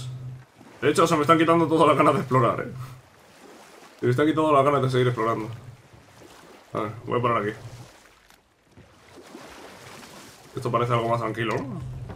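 Oars splash softly in water as a boat is rowed.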